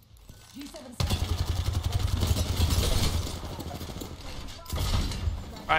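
Rapid gunfire rattles loudly in a game.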